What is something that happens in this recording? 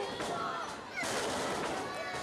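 A wrestler's body slams hard onto the ring mat.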